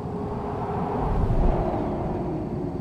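A passing truck rumbles loudly by and fades.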